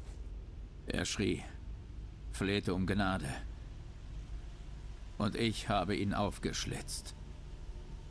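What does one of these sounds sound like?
A man speaks calmly and darkly.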